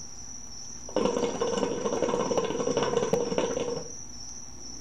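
Water bubbles loudly in a hookah as a man draws on it.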